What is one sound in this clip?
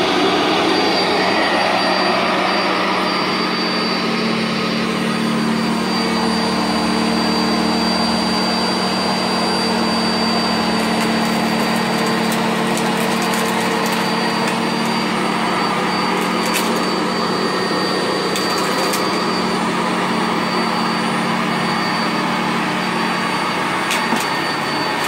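A vacuum cleaner motor whirs loudly and steadily.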